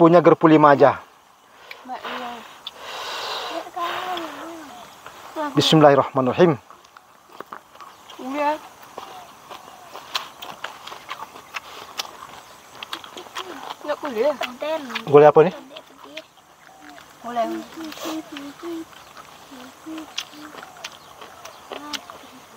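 Young girls chat nearby.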